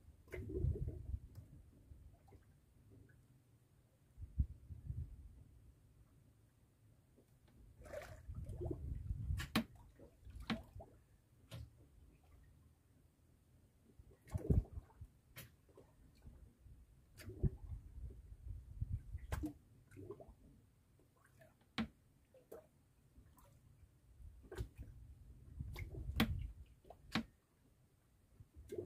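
A fishing line rattles and slaps as it is hauled in by hand.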